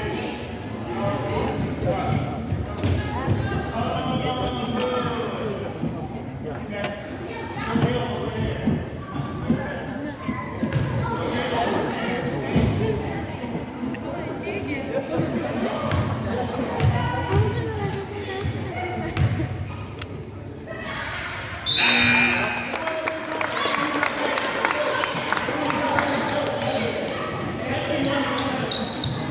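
Spectators talk and call out in an echoing gym.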